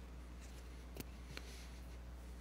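A microphone bumps and clicks close by.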